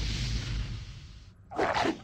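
Magic lightning crackles and zaps.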